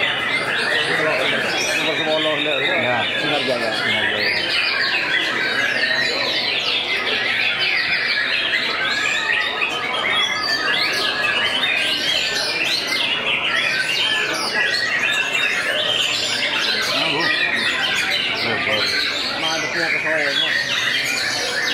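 A songbird sings a loud, fast, varied song of whistles and chirps.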